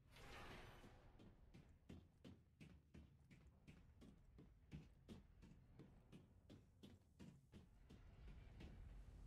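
Footsteps clank steadily on a metal grating.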